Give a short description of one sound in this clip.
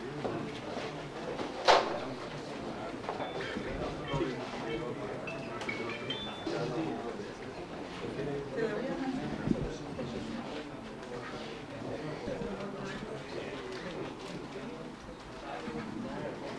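A crowd of adults murmurs and chatters quietly nearby.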